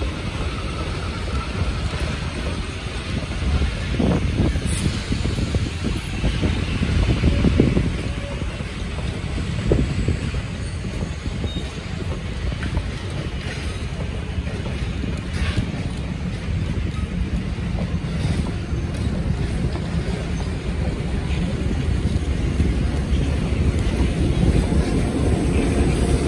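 Train wheels clatter and clunk over rail joints.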